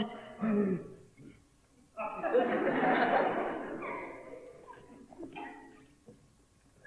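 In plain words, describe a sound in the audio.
A man cries out loudly and emotionally in a reverberant hall.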